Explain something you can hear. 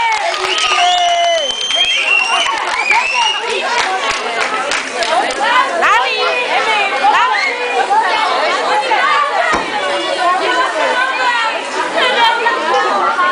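Young children shout and squeal excitedly nearby, outdoors.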